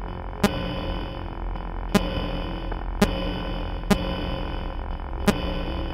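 A low static hum drones steadily.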